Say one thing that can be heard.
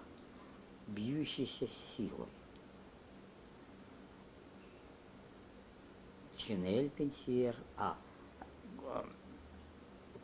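An elderly man speaks close by in short, animated bursts.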